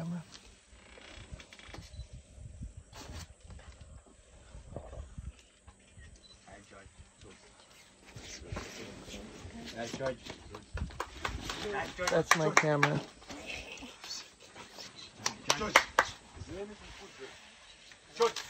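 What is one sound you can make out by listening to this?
A bag rustles and thumps as an elephant's trunk grabs and drops it.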